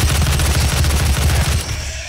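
A fiery blast bursts loudly.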